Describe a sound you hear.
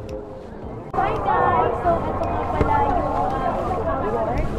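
A young woman talks excitedly, close to the microphone.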